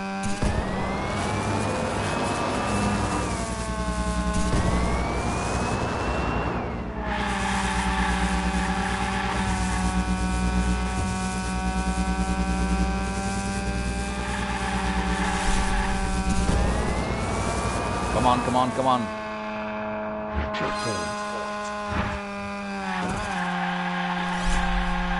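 A racing car engine whines loudly, revving up and dropping as it shifts gears.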